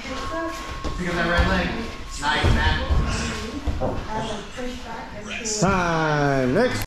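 Bodies thud and shuffle on a padded mat.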